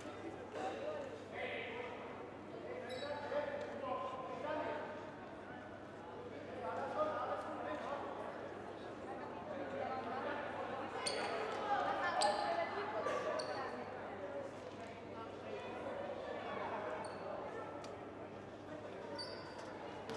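Men call out to each other across a large echoing hall.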